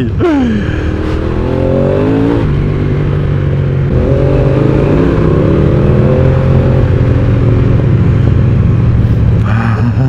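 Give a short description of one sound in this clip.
A motorbike engine hums and revs as it rides along.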